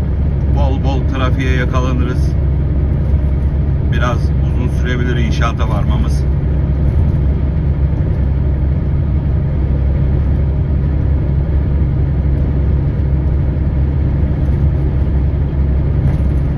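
Tyres roll on a motorway with a steady road roar.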